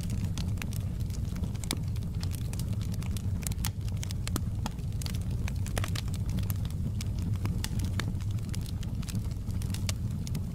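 Flames roar low and steadily.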